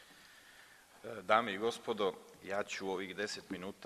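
A man speaks into a microphone in a calm, formal tone.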